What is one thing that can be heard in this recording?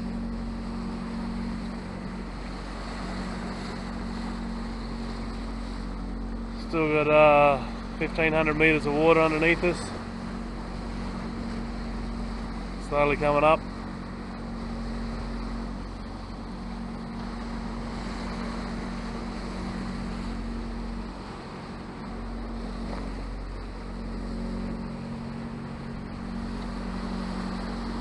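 Wind blows steadily outdoors over open water.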